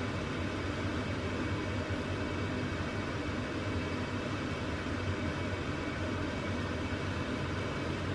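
A wooden spoon stirs a thick stew in a pot.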